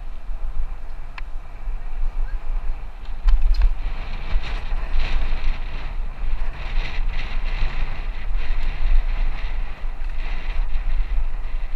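Wind rumbles steadily across a moving microphone outdoors.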